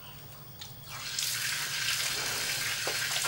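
Water splashes onto a tiled floor.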